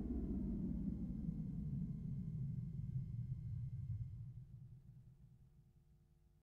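Heavy bass booms from large loudspeakers and slowly fades away.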